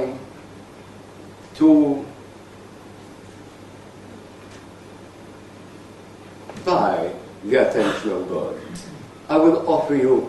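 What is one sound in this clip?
An elderly man speaks slowly and deliberately, with long pauses.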